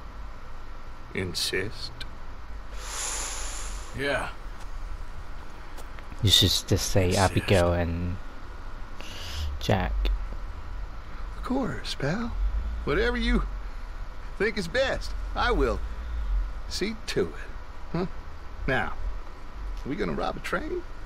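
A man speaks in a low, gruff voice, close by.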